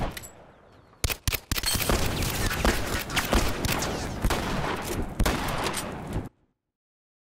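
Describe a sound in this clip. Heavy blows thud and crash in a close fight.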